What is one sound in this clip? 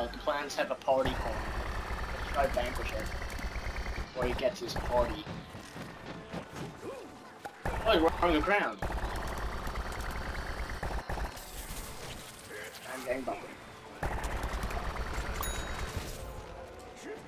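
A cartoonish cannon fires rapid bursts of popping shots.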